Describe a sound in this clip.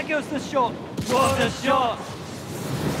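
A ball whooshes through a glowing ring with a bright burst of sound.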